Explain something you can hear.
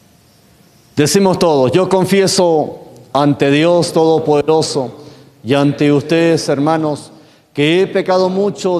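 A man speaks calmly into a microphone in an echoing room.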